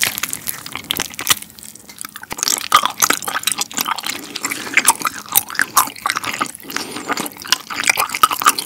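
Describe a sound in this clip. A young man chews loudly with wet, crackling sounds close to a microphone.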